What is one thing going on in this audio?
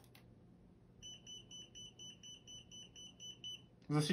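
A tester beeps in short, rapid, repeating pulses.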